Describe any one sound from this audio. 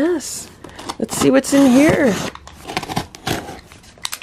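A blade slices through packing tape on a cardboard box.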